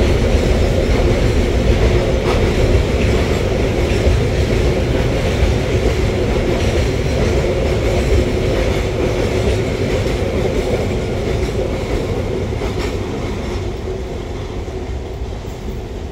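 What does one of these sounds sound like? A freight train rumbles past close by and fades away.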